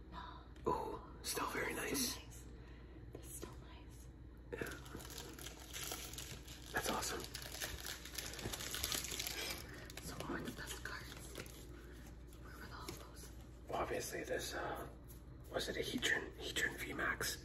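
A young woman talks close to a microphone.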